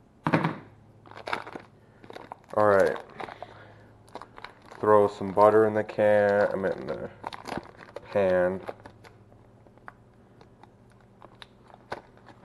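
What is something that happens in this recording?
Plastic wrapping crinkles as it is unwrapped.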